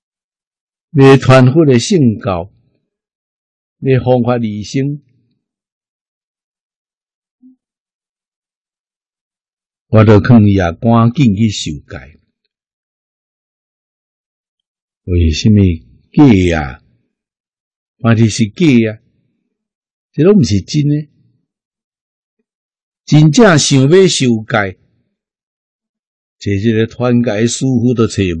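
An elderly man speaks calmly and warmly into a close microphone, in short phrases with pauses between them.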